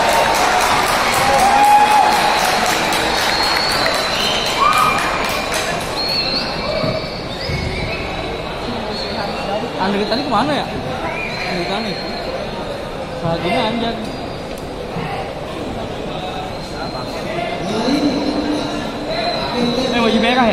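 A crowd of spectators murmurs and chatters in a large open stadium.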